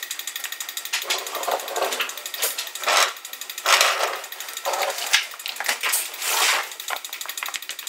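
A large metal tube bumps and scrapes as it is set down close by.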